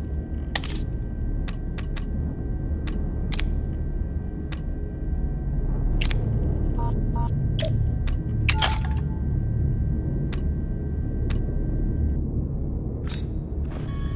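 Short electronic clicks sound as a menu is browsed.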